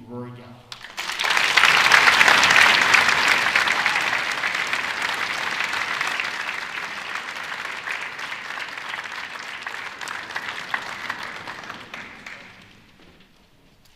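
An audience applauds loudly, then the clapping fades away.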